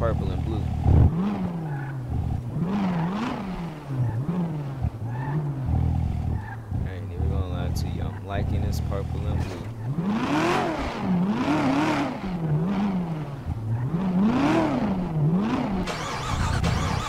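A sports car engine revs up and down repeatedly while idling.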